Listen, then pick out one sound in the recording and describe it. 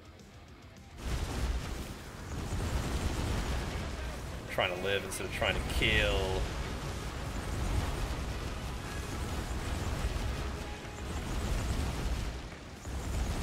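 Game sound effects and music play loudly.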